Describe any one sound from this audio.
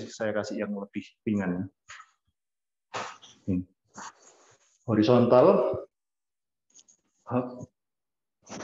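A man speaks in short bursts over an online call, sounding strained.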